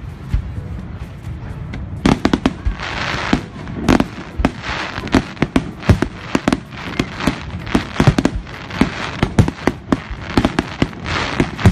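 Fireworks bang and pop in rapid bursts.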